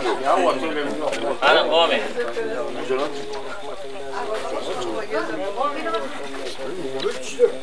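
An elderly man chants a prayer aloud.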